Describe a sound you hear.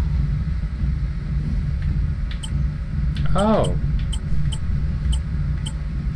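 A soft menu click sounds as a selection changes.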